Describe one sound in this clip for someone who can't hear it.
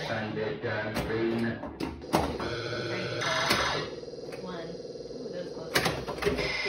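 A pinball machine plays electronic tones and sound effects.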